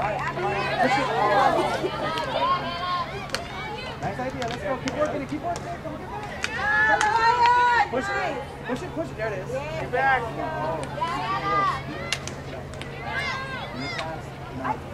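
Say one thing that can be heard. Field hockey sticks click against a ball.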